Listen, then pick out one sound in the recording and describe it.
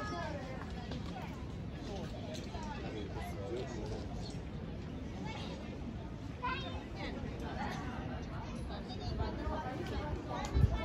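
A crowd of people chatter in the distance outdoors.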